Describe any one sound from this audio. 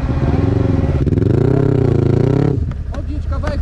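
A quad bike engine revs loudly up and down close by.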